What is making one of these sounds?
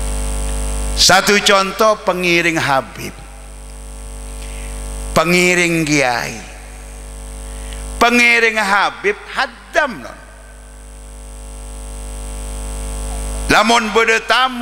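An older man speaks with animation into a microphone, heard through loudspeakers in bursts with pauses.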